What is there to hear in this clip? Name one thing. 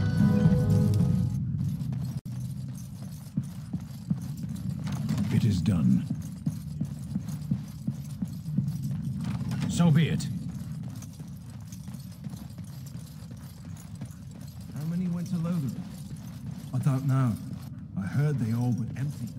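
Armoured footsteps thud steadily on a stone floor.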